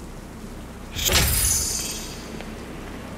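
A car engine roars briefly with a whooshing burst.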